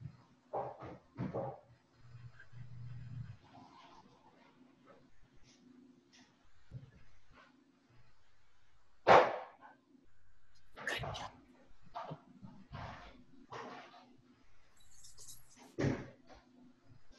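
A young woman speaks quietly and calmly, close by, with pauses.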